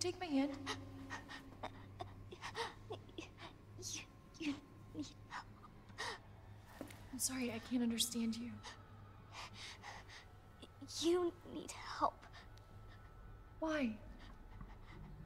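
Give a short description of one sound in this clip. A young woman speaks softly and gently, close by.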